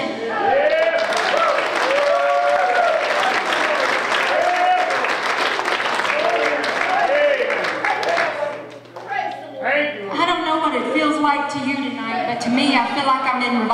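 Two women sing together through microphones over loudspeakers.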